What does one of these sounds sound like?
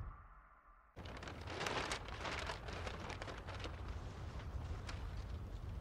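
Wind gusts outdoors, rustling and scraping loose paper along the ground.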